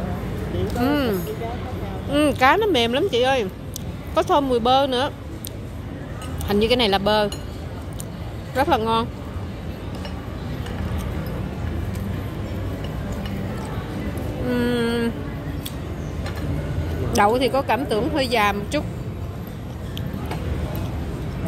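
Cutlery scrapes and clinks against plates.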